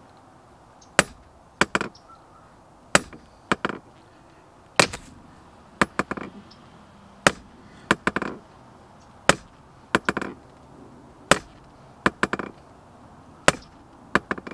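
A sledgehammer strikes a metal rod again and again with sharp, ringing clangs.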